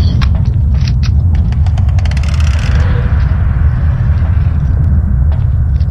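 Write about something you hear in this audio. A gun fires a short burst of shots.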